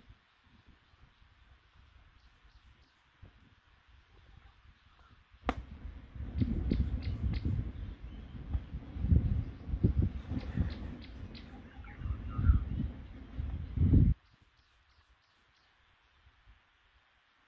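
A small wood fire crackles softly.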